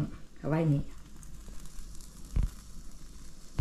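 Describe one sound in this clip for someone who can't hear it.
A metal stove door clunks open.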